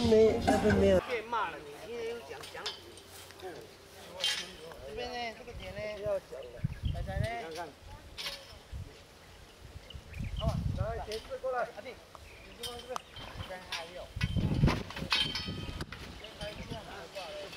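Men talk casually outdoors.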